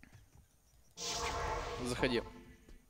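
A magic portal opens with a shimmering whoosh.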